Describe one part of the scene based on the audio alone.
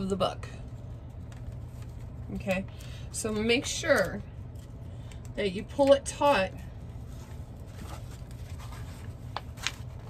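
Paper rustles softly as a small booklet is handled.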